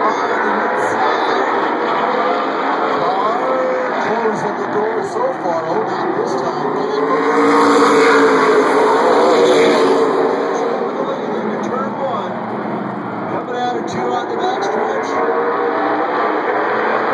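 Race car engines roar around a track outdoors.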